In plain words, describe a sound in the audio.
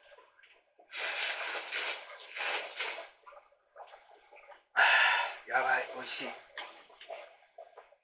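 A person slurps noodles loudly.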